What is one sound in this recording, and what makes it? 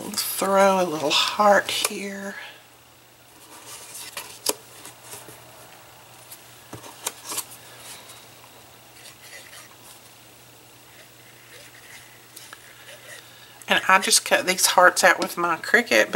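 Paper taps and slides on a table.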